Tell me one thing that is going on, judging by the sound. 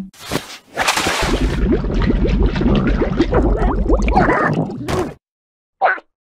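A cartoon creature screams loudly with its mouth wide open.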